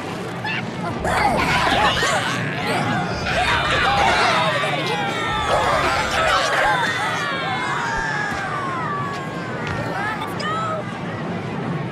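Electronic game sound effects zap and whoosh with falling tones.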